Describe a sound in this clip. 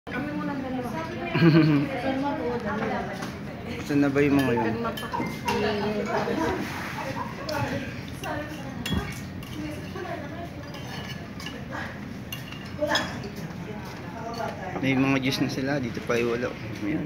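Women talk and laugh nearby.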